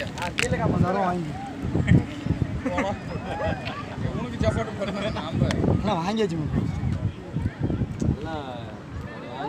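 Several men talk loudly over one another close by, outdoors.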